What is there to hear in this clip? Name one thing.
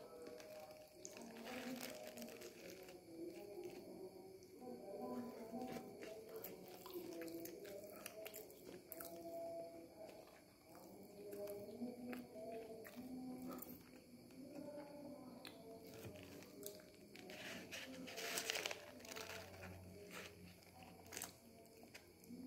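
A paper wrapper crinkles close by.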